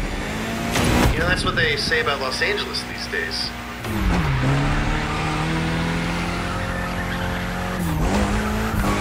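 A car engine roars and revs, dropping in pitch at each gear change.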